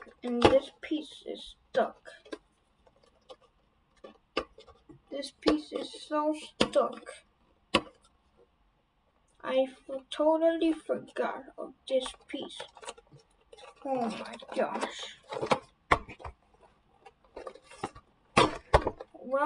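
Paper rustles and crinkles as a magazine is handled.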